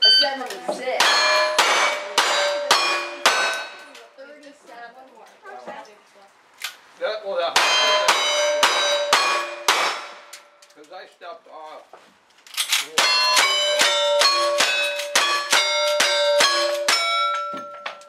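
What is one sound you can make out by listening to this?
Gunshots crack in quick succession outdoors.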